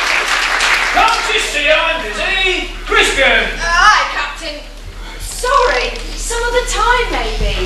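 A woman speaks loudly in an echoing hall.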